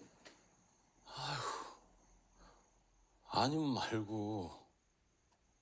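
A young man speaks softly and hesitantly, close by.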